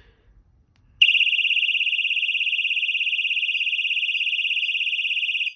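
An alarm panel sounds a loud, steady, high-pitched pulsing alarm tone.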